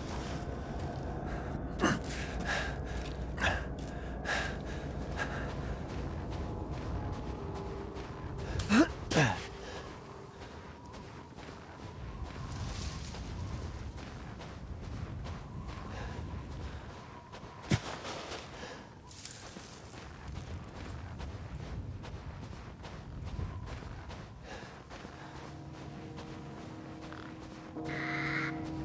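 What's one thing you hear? Footsteps crunch slowly through snow.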